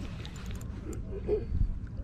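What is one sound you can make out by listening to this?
A fishing reel clicks softly.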